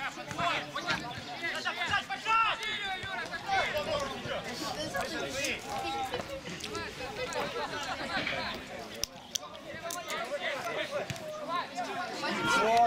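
Several men shout to each other across an open field outdoors.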